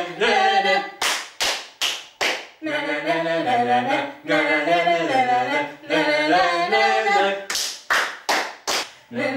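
Two women clap their hands in rhythm.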